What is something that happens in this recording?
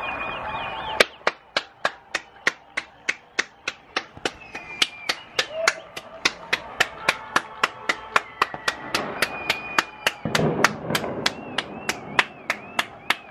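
A person claps hands steadily close by.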